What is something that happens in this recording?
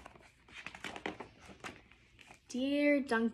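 Paper pages rustle as a book's page is turned.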